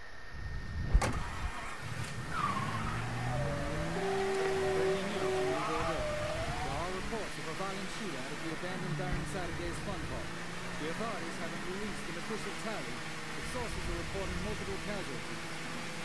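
A car engine revs up and hums as the car speeds along a road.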